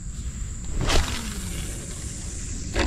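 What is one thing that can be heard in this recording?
Fishing line whirs off a reel and slows.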